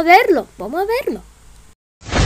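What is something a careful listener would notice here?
A boy calls out in a sliding, playful voice close up.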